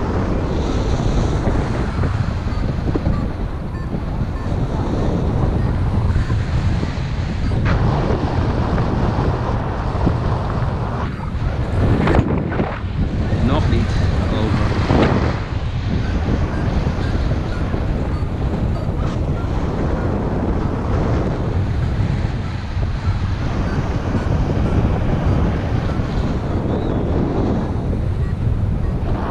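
Strong wind rushes and buffets steadily, as if in flight high in the open air.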